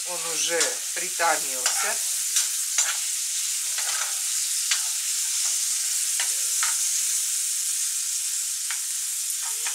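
A spoon scrapes and clinks against a pan.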